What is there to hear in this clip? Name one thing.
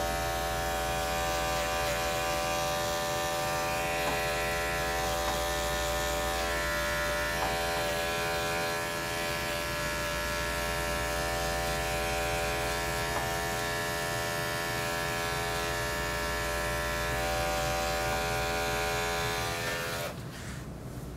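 Electric hair clippers buzz steadily while trimming a dog's fur.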